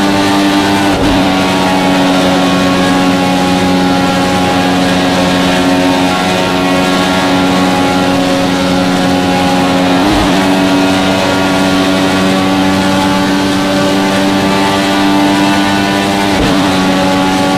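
A racing car engine briefly cuts out with quick gear changes.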